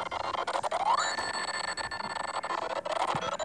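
A bright chiming jingle rings out as coins scatter.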